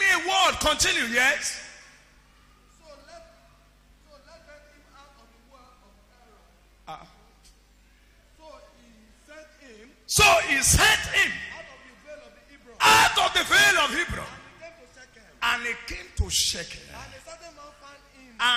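A man preaches loudly and with animation through a microphone in an echoing hall.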